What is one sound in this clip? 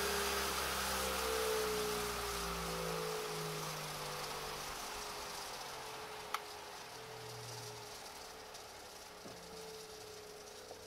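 An electric motor whirs at high speed and slowly winds down.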